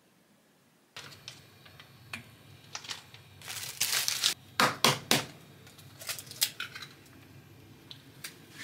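Metal utensils clink and scrape against a metal pan.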